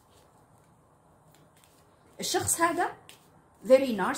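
Playing cards rustle softly as they are shuffled by hand.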